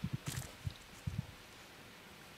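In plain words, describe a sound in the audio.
Footsteps thud softly through grass.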